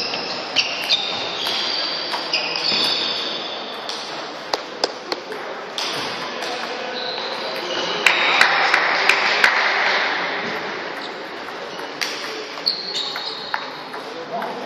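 A large indoor hall echoes with a steady background murmur.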